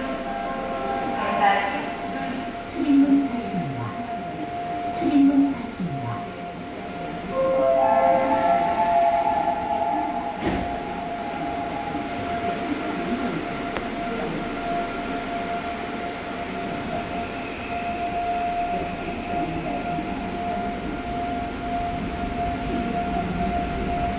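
A subway train hums and rumbles steadily while it runs.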